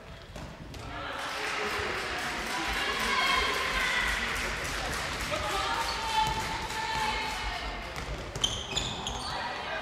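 Young spectators cheer and shout from the side.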